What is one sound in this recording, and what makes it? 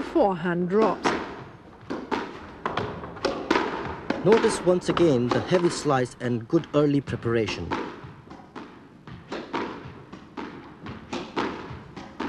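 A squash ball smacks against the walls and racquets.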